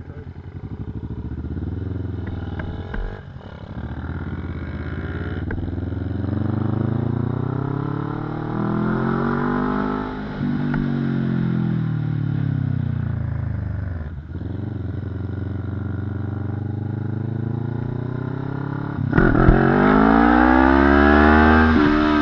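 A sport motorcycle engine revs up and shifts through the gears.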